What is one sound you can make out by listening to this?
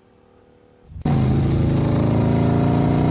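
A motorcycle engine roars loudly as it rides past.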